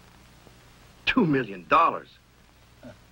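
A middle-aged man speaks firmly into a telephone.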